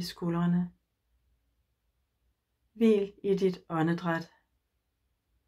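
An older woman speaks calmly and closely, as if over an online call.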